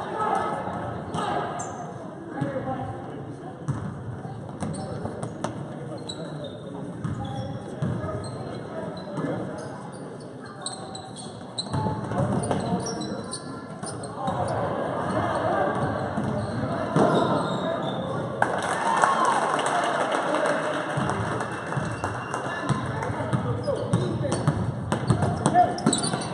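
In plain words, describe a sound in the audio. Spectators chatter and cheer from the stands.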